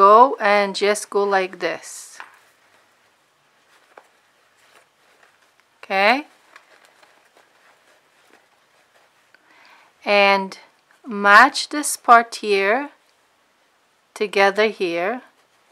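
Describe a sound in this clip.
Fabric rustles softly as hands fold and turn it.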